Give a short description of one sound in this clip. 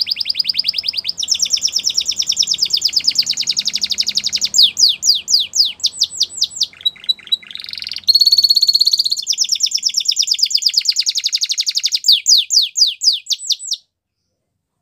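A canary sings close by with rapid trills and chirps.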